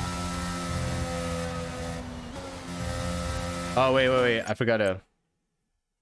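A racing car engine roars and revs at high speed.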